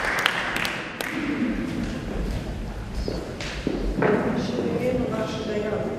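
People in the audience murmur and talk quietly.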